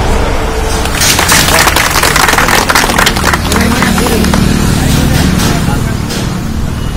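A crowd claps and applauds outdoors.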